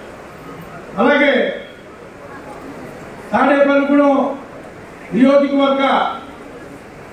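A man speaks loudly into a microphone, heard over a loudspeaker, in short bursts.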